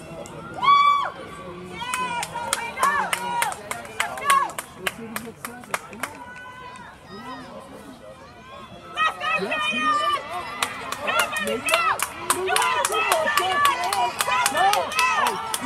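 A crowd of young people shouts and cheers outdoors, some way off.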